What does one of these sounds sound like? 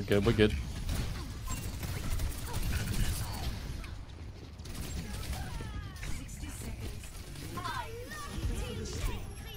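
Small explosions thud and boom.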